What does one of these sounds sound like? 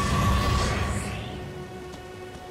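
A burst of fire roars loudly and quickly dies away.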